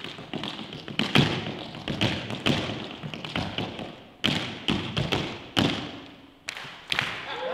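Tap shoes click and clatter in quick rhythms on a hard floor in an echoing hall.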